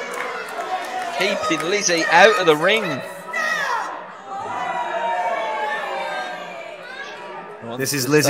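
A crowd in a hall cheers and chatters.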